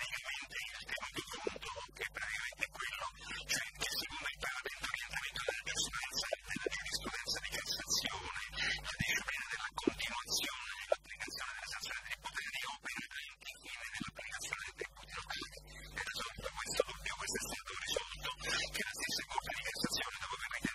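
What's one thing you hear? An older man speaks into a desk microphone.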